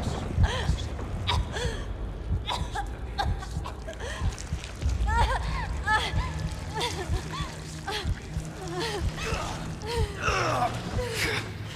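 A young woman groans and laughs menacingly.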